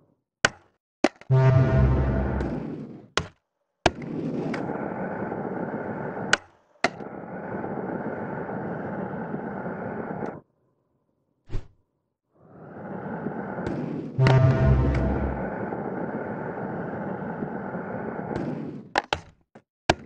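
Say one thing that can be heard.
A skateboard clacks sharply as it lands and snaps.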